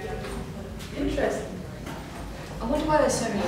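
A young woman talks briefly nearby.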